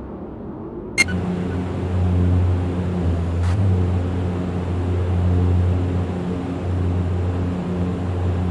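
Propeller engines hum steadily and loudly from close by.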